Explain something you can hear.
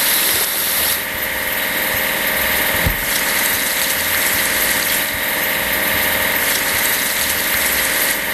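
A spinning brush scrubs with a whirring rush.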